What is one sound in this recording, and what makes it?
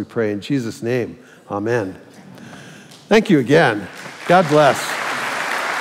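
A man speaks through a microphone into a large echoing hall.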